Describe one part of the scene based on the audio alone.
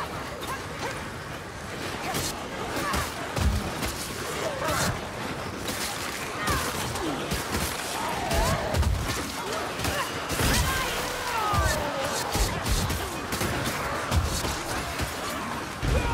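Creatures snarl and screech in a frantic fight.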